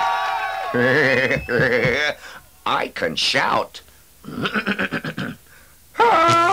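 A man speaks in a silly, animated puppet voice.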